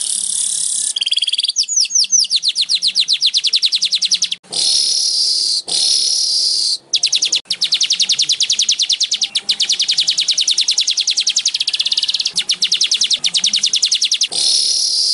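A small bird sings a fast, buzzing trill with hissing bursts, close by.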